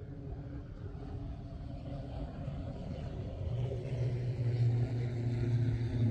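A small plane's engine drones in the distance and grows louder.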